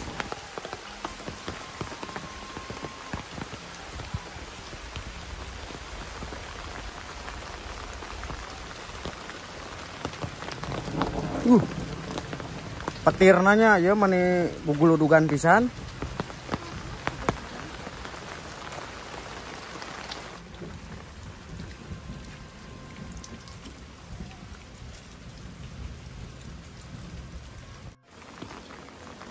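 Rain patters steadily on an umbrella outdoors.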